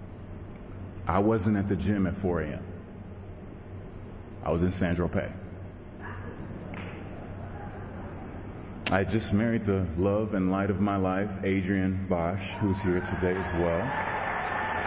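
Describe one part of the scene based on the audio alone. A man speaks slowly and with feeling into a microphone, heard through loudspeakers.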